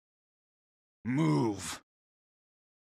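A man growls angrily.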